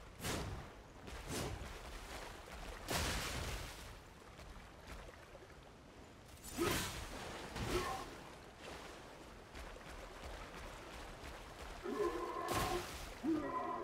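Weapons swing and strike with sharp whooshes and heavy impacts.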